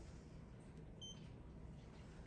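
A lift button gives a short beep.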